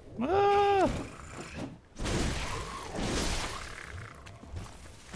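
A blade swishes through the air and strikes flesh with heavy thuds.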